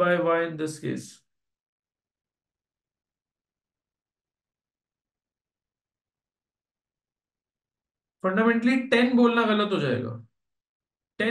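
A young man speaks calmly into a close microphone, explaining.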